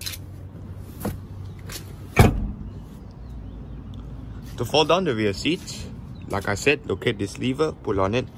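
A hand pats and presses on a padded car seat.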